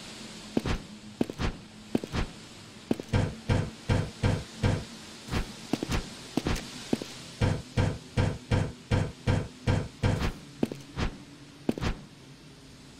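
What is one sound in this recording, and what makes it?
Footsteps thud in a quick, even rhythm as a game character climbs.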